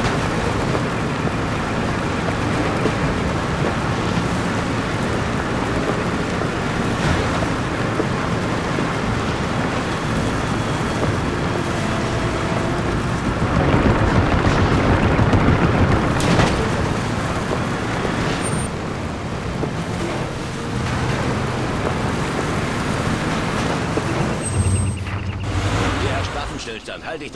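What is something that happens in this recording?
A vehicle engine rumbles steadily.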